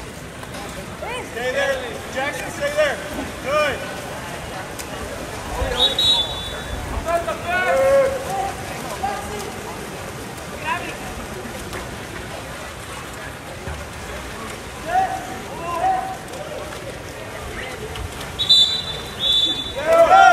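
Spectators shout and cheer from the poolside.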